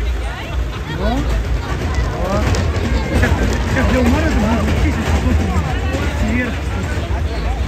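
Children on a ride scream and shout with excitement.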